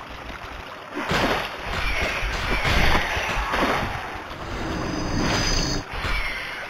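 A sword slashes and strikes a giant rat.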